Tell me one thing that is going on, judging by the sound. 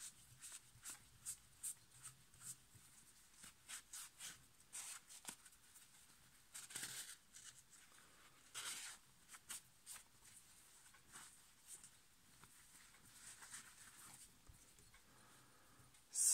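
A cloth rubs and squeaks against a plastic part.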